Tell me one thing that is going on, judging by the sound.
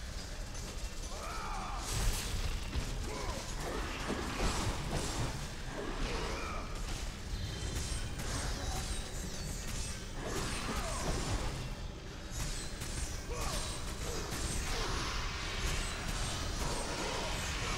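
Flaming chained blades whoosh through the air.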